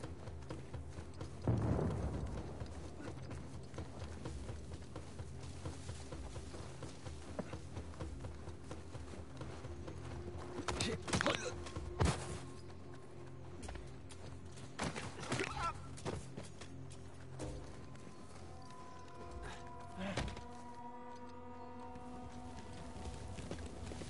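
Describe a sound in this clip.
Footsteps crunch through dry grass and snow.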